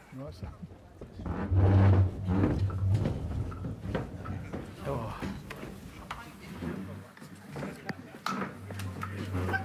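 Chairs scrape and knock as men stand up.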